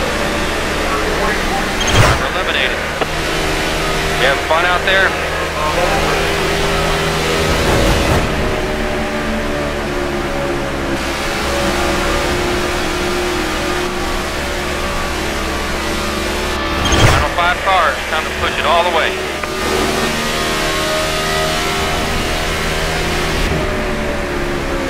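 A race car engine roars at high speed, steady and droning.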